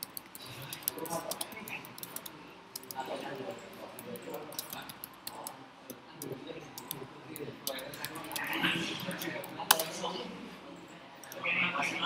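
Keys on a keyboard click quickly as someone types.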